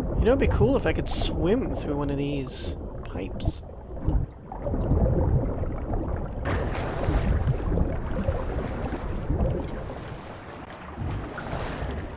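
Water splashes and churns as someone swims.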